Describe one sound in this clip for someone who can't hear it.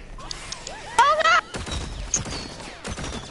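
Cartoon guns fire in rapid bursts.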